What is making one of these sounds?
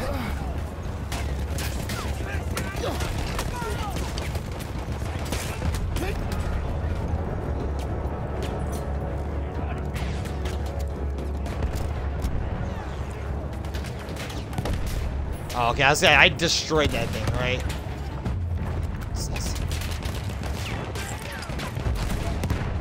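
A deep, steady rumble of battle rolls on throughout.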